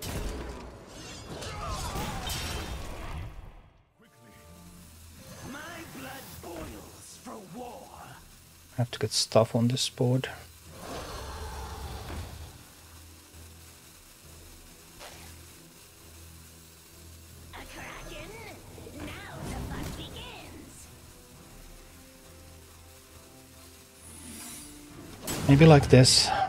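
Digital card game sound effects whoosh and chime.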